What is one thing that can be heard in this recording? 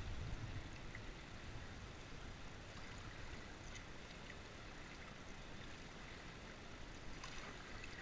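A paddle dips and splashes in the water.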